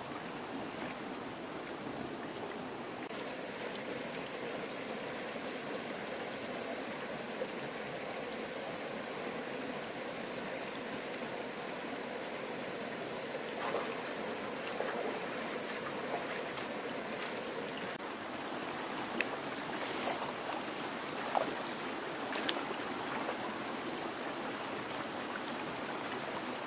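A shallow stream ripples and babbles over stones.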